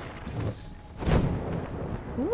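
A heavy thud lands on stone.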